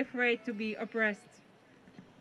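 A woman speaks into a microphone.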